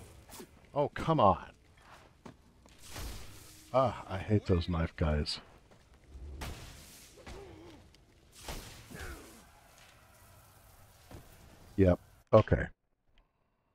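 Punches and blows thud heavily in a brawl.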